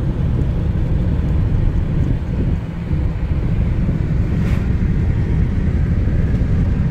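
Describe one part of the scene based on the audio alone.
Wind buffets against the car window.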